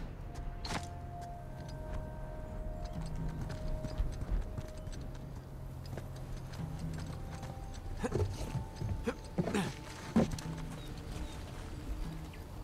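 Footsteps scuff on stone and dirt.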